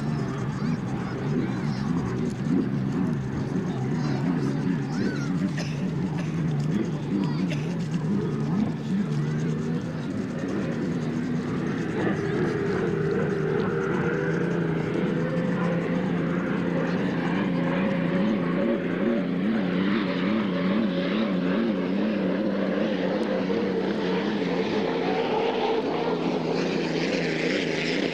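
A racing boat's engine roars loudly as the boat speeds past over water.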